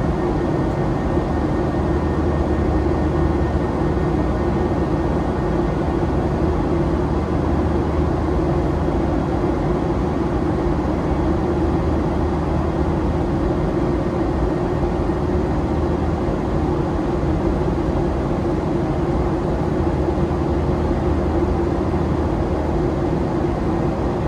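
A jet airliner's engines drone steadily from inside the cabin.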